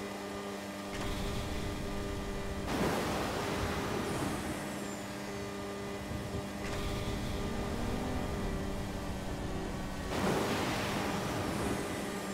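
A motorbike engine drones steadily at speed.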